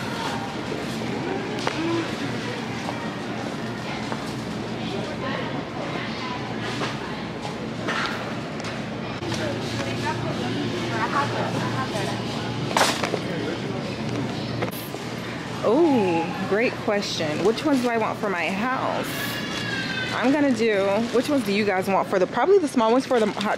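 A shopping cart rolls along a hard floor.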